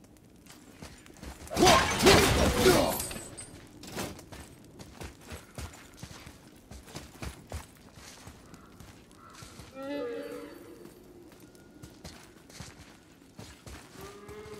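Heavy footsteps tread on stone.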